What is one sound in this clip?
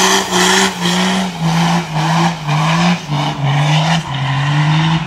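Tyres screech as they spin on pavement.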